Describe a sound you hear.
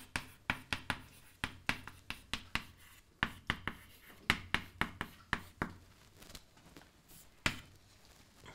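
Chalk taps and scrapes on a blackboard in quick bursts.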